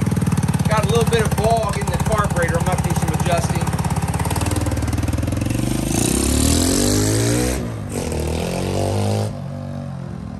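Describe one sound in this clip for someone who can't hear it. A small motorbike engine revs loudly close by, then fades as the bike rides away.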